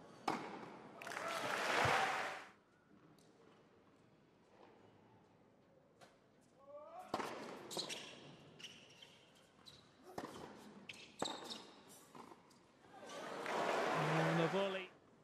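A crowd applauds in an indoor arena.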